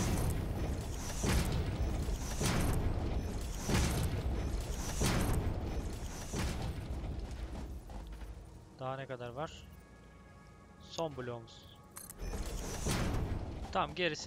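A game building tool whooshes and rumbles in repeated bursts.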